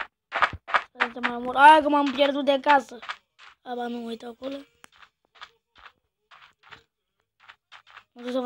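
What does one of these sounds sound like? A boy talks animatedly into a close microphone.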